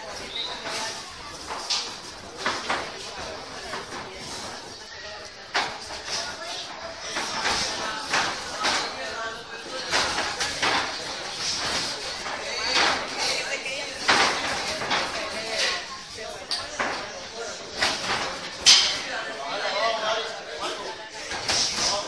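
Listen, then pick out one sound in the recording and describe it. Punches and kicks thud against bodies in sparring.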